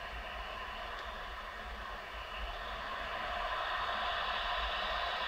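Stadium crowd noise from a football game plays through a phone's speaker.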